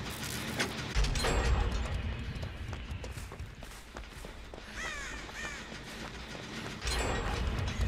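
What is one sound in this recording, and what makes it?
Footsteps run quickly through tall grass.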